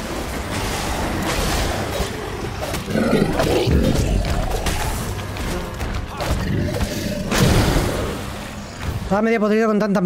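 Heavy rumbling and clashing of a fantasy monster battle fill the air.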